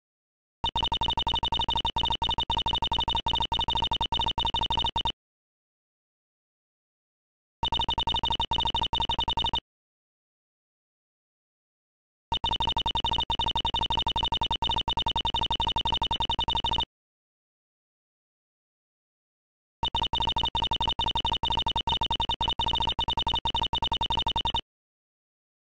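Rapid, high electronic blips chatter in short bursts, like a game's dialogue ticking out.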